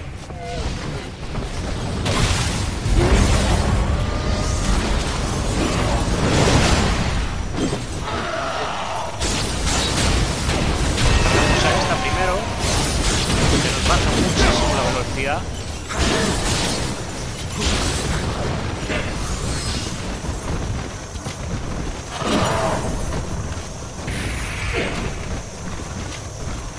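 Swords clash and slash in quick, heavy blows.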